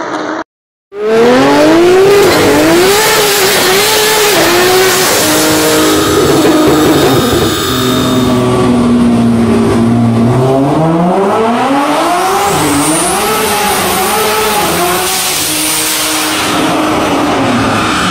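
A powerful car engine revs hard through its gears, loud and echoing.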